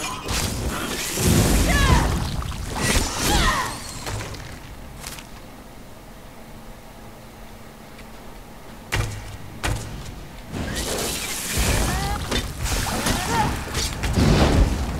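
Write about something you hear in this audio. Weapons strike and magic blasts crackle in a fight.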